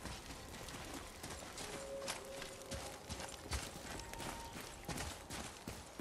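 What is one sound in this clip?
Footsteps crunch on dirt and snow.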